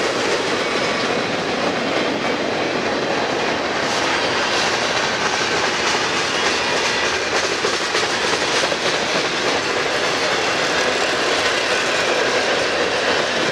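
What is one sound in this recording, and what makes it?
Steel wheels squeal and clank over rail joints.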